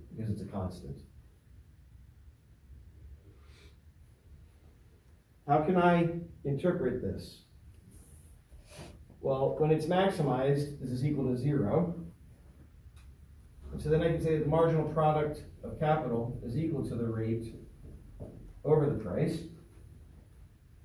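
A man speaks calmly, explaining in a lecturing tone.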